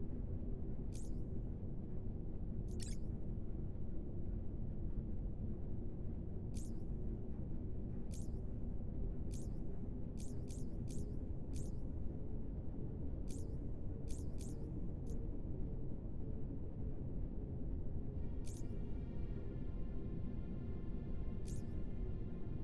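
Short, soft menu clicks tick now and then.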